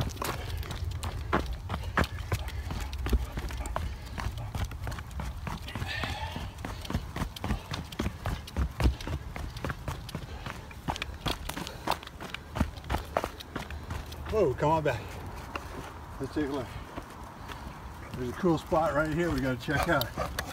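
A dog's paws patter quickly on a dirt trail.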